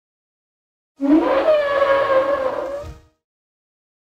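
A dinosaur lets out a long, wavering cry.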